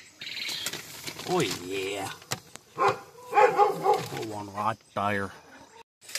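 A hand digs through dry wood shavings with a rustle.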